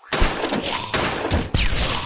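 A magic blast bursts loudly.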